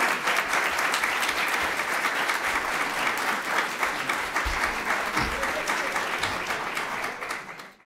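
A large audience claps steadily in a hall, then fades out.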